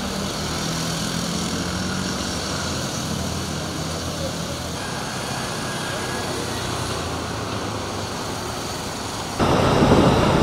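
Motorcycle engines hum steadily as traffic passes along a road.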